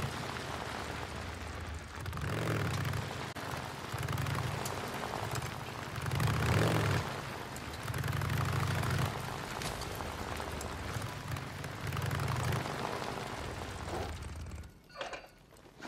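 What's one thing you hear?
A motorcycle engine rumbles and revs in bursts.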